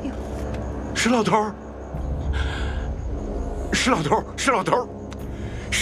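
A woman calls out urgently and anxiously.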